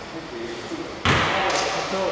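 Players shout loudly in an echoing hall.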